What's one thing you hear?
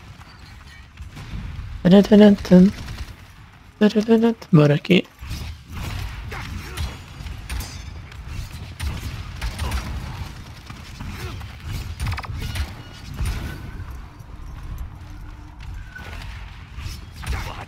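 Flames roar in short bursts from a fired weapon.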